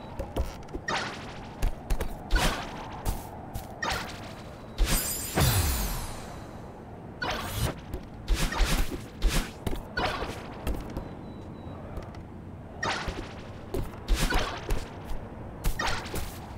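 Short whooshing game sound effects play in quick bursts.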